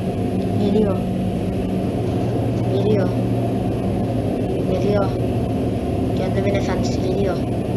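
A large machine hums with a steady low drone.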